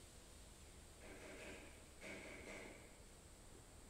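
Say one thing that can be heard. A man breathes out audibly close to a microphone.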